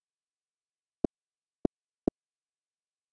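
Short game menu clicks sound.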